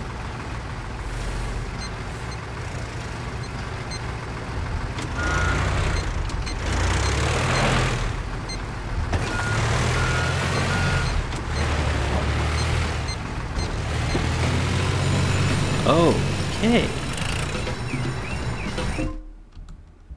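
A machine engine rumbles steadily.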